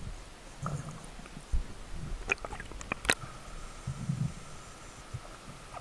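Water splashes at the surface.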